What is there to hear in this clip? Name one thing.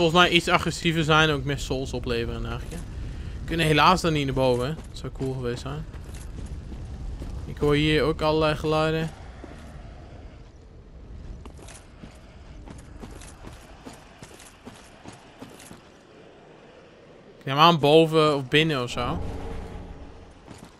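Armoured footsteps crunch over stone and dirt.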